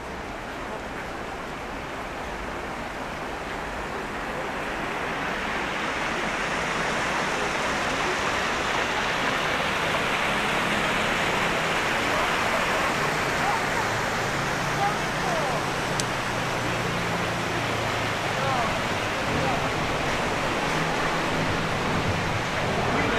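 A stream of water rushes and splashes steadily, growing louder.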